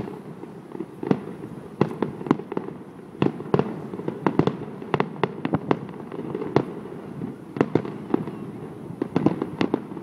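Distant fireworks burst in a run of sharp booms and bangs.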